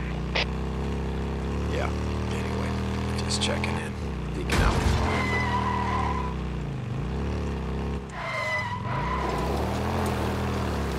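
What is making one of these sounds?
A motorcycle engine hums steadily and changes pitch as it rides.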